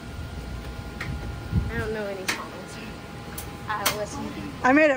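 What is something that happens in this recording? Metal tongs click against a grill.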